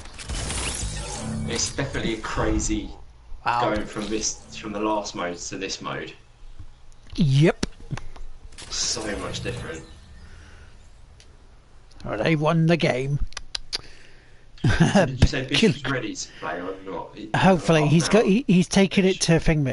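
A man talks casually into a microphone, close up.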